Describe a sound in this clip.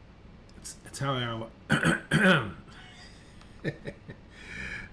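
A middle-aged man speaks casually into a close microphone.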